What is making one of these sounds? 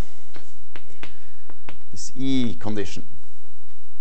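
A man writes on a chalkboard with chalk tapping.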